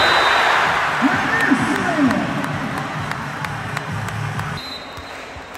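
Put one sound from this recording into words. Young men shout and cheer together nearby.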